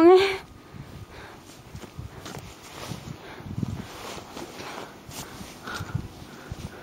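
Footsteps crunch steadily along a path in the snow.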